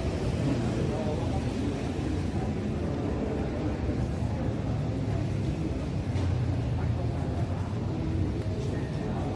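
A seated crowd murmurs quietly in a large open hall.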